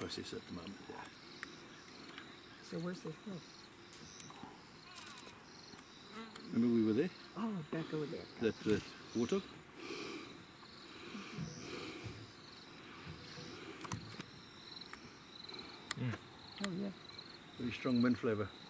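A leopard growls in short, rasping bursts close by.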